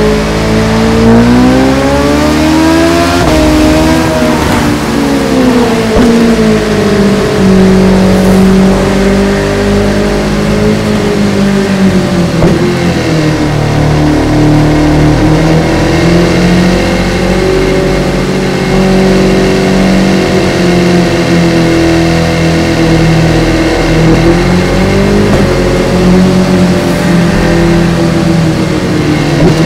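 A motorcycle engine revs up and down, rising and falling in pitch as gears shift.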